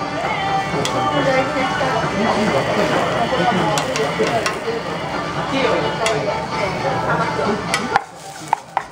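A metal spatula clinks and scrapes against a hot griddle.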